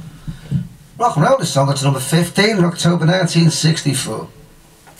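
A man speaks up close into a microphone.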